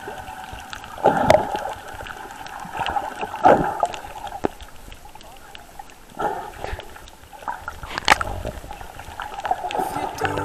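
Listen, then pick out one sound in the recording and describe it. Bubbles gurgle and pop close by underwater.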